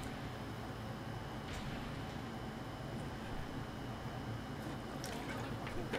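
A man gulps water from a plastic bottle.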